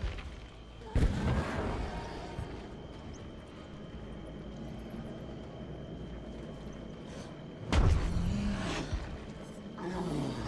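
A deep rushing burst flares up and fades.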